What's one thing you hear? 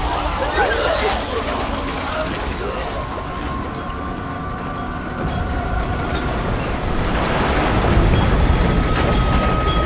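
Thick liquid bubbles and churns.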